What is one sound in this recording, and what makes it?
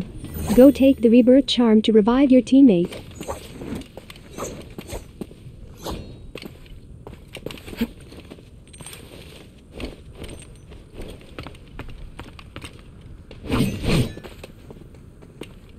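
Footsteps thud on stone and wooden planks.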